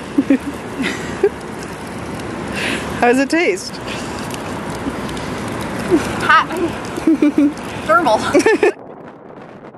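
Water trickles and splashes from a small fountain.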